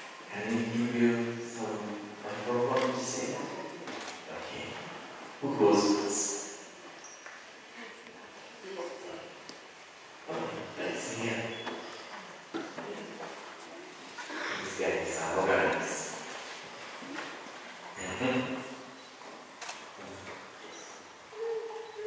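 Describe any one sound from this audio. A middle-aged man speaks warmly through a microphone in a room with some echo.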